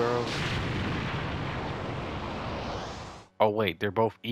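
A loud blast roars and slowly fades.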